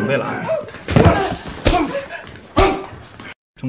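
A heavy body crashes to the floor during a scuffle.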